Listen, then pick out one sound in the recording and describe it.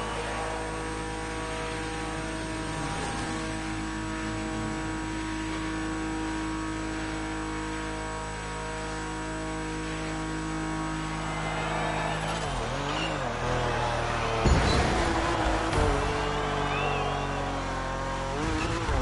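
A racing car engine roars steadily at high speed, then drops and rises in pitch as it slows and speeds up.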